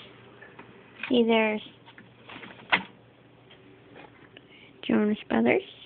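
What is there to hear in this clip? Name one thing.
A plastic disc case clicks and rattles as a hand handles it.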